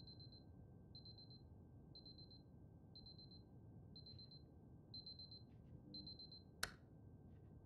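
An alarm clock beeps steadily, once every second.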